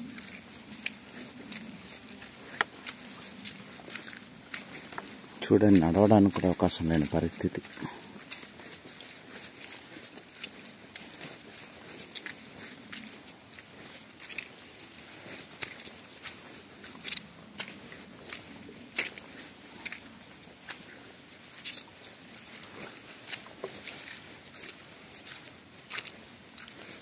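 Footsteps squelch through wet mud.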